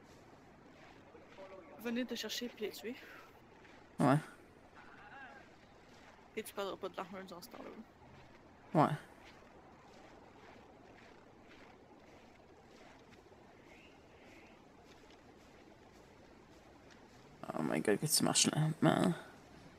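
Footsteps crunch through snow at a steady walk.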